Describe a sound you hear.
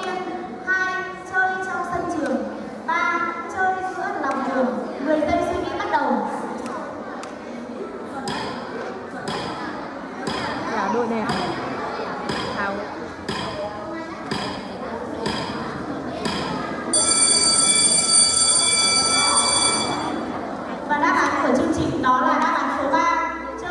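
A woman speaks with animation through a microphone and loudspeakers in an echoing hall.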